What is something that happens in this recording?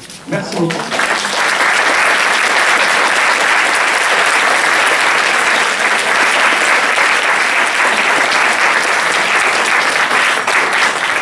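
An audience claps and applauds steadily.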